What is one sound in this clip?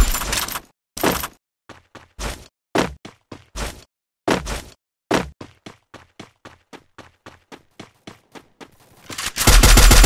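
Footsteps thud quickly on grass.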